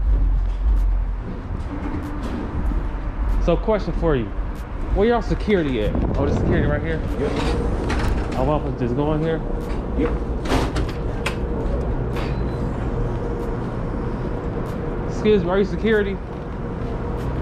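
Footsteps tap on a hard walkway.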